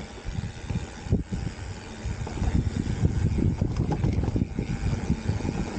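Mountain bike tyres roll over a dry dirt trail.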